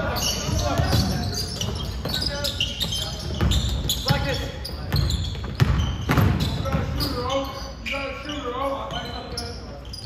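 Young players shout and call to each other in a large echoing gym.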